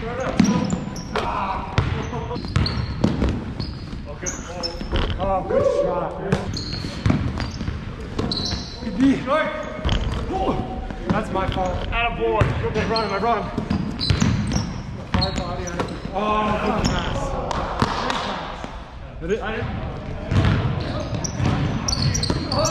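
Several men talk and call out to each other in a large echoing gym.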